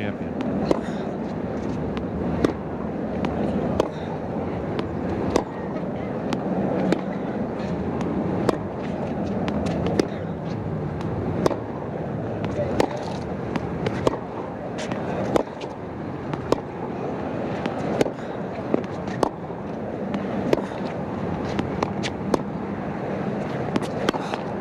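Tennis balls are struck back and forth with sharp pops in a steady rally.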